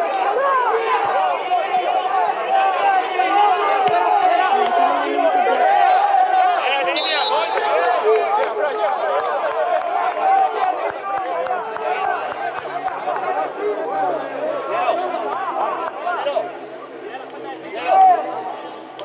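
Young men shout and call out to each other across an outdoor field.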